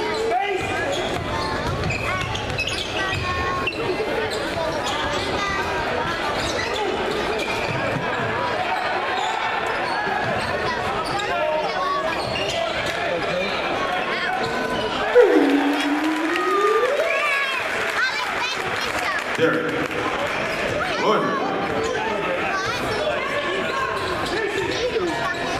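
A crowd cheers in a large echoing gym.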